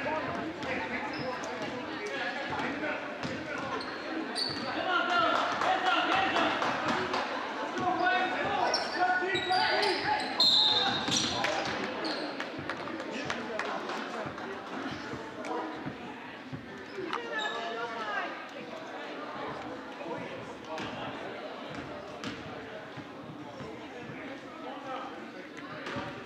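A crowd of spectators cheers and calls out.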